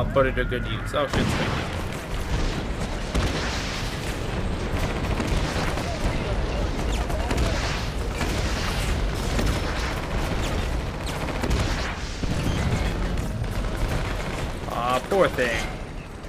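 A heavy tank engine rumbles low.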